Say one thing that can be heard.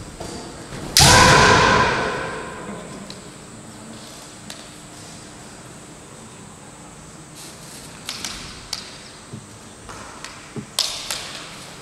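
Bamboo swords clack together sharply.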